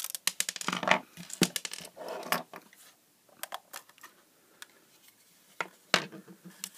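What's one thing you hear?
Plastic parts click and clatter as they are handled.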